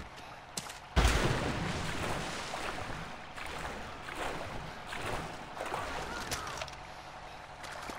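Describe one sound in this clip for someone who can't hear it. Water sloshes with swimming strokes.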